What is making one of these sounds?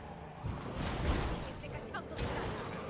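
A car crashes with a loud thud and scrape.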